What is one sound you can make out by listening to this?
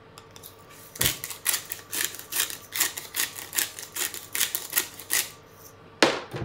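A pepper grinder grinds with quick dry crackles.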